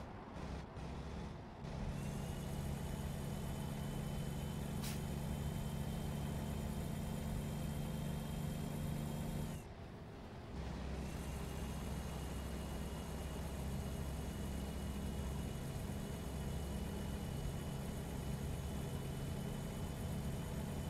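A truck engine hums steadily as it drives along a highway.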